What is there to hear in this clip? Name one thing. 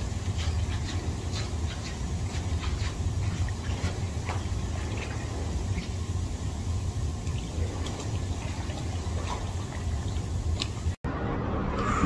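Jets of water churn and bubble steadily.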